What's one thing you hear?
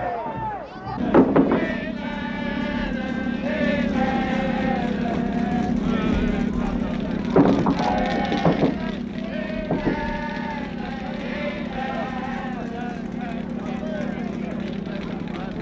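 A crowd of men and women sings along loudly outdoors.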